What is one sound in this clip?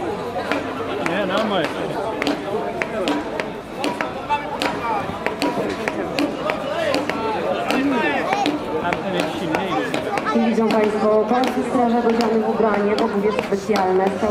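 A hammer pounds repeatedly on a metal block.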